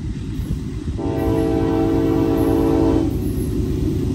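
A train horn blasts loudly.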